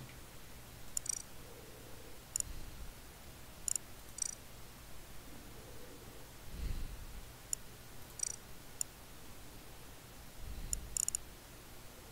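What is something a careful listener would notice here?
Short, high menu click sounds chime several times.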